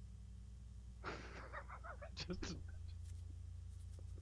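Two men laugh over an online call.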